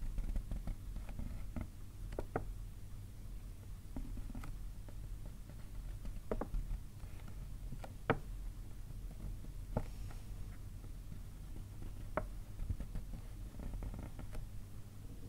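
Fingers tap lightly on a paper bag.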